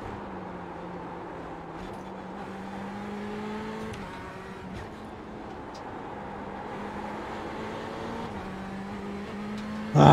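A racing car engine drones steadily, its pitch stepping at each gear change.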